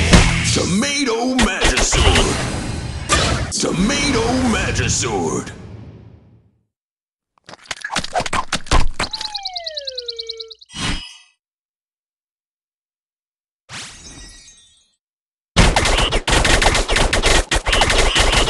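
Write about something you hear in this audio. Cartoon characters' attacks whoosh and splat in quick bursts.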